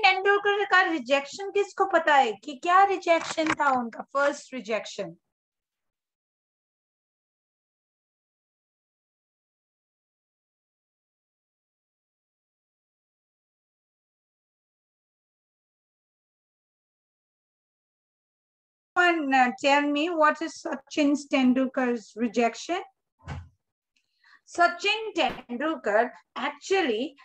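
A young woman sings close to a microphone.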